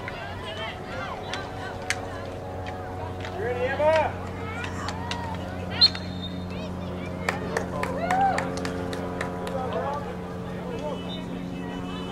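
Hockey sticks clack against a ball outdoors.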